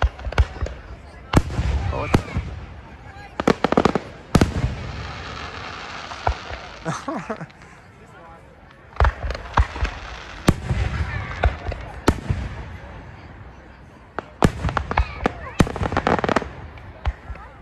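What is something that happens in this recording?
Firework sparks crackle after the bursts.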